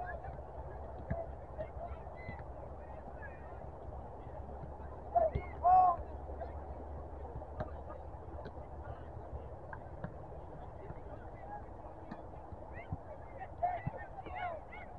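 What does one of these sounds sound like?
Players shout to each other across an open field in the distance.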